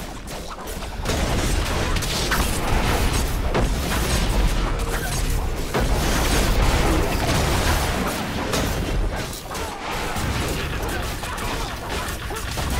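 Magic blasts and crackles in a loud, busy battle.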